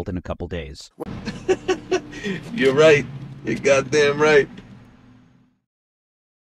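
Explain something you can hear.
A man speaks forcefully.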